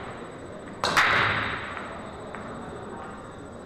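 Pool balls roll and click against each other on the table.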